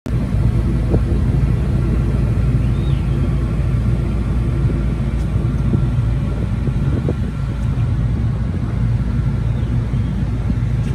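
A ferry's engine rumbles steadily.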